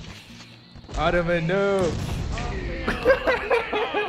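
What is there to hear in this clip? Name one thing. A cartoon explosion bursts with a loud boom.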